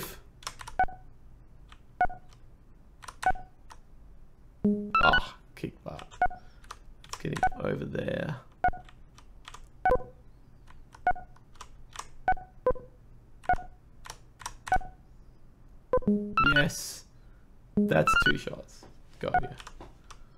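A video game gives short, regular electronic beeps.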